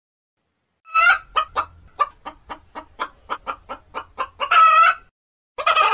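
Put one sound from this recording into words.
A chicken clucks and squawks close by.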